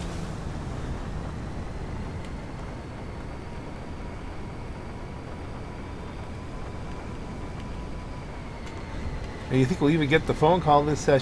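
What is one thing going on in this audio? A hovering car hums steadily in flight.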